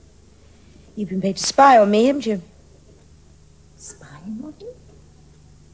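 An older woman speaks, upset, in a room.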